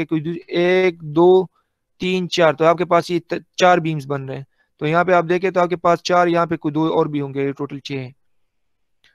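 A young man speaks calmly through a microphone on an online call.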